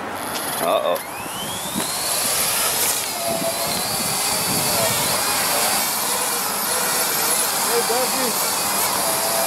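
A small drone's propellers spin up with a high whine and buzz steadily as it hovers.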